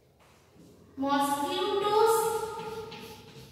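A woman speaks clearly nearby.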